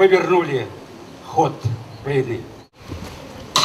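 An elderly man speaks calmly through a microphone outdoors.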